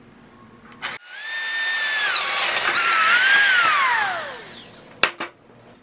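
A power drill whines at high speed, then winds down.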